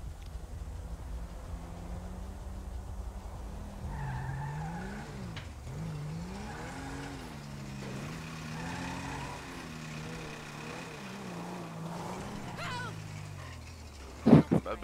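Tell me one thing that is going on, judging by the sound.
A car engine hums and revs up and down as the car drives slowly.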